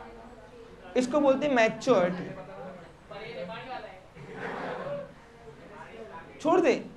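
A young man speaks calmly into a close microphone, explaining.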